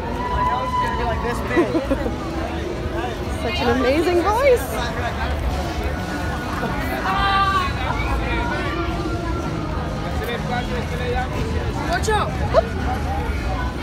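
Nearby people talk loudly over the crowd.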